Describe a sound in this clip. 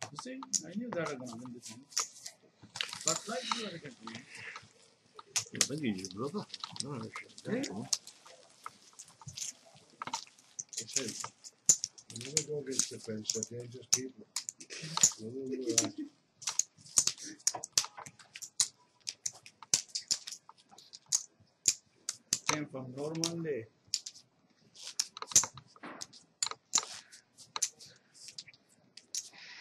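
Poker chips click and clatter together.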